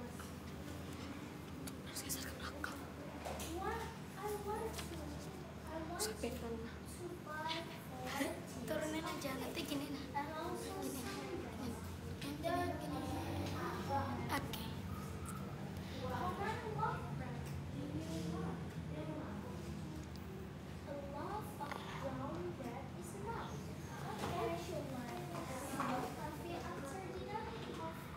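A second young woman speaks close by in reply.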